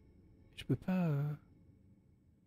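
A man gives a short, drawn-out vocal exclamation close to a microphone.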